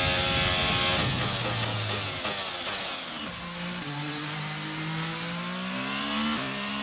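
A racing car engine drops to a low growl and then slowly climbs again.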